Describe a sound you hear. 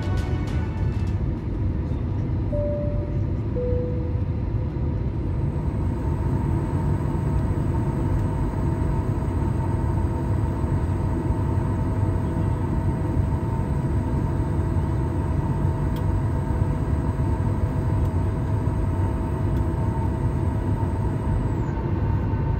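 A jet engine roars steadily with a low, even drone.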